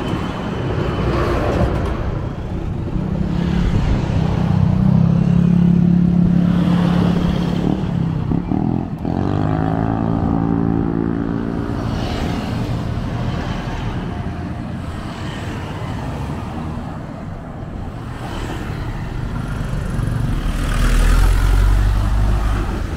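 Vehicles pass close by on a road, engines humming and tyres hissing.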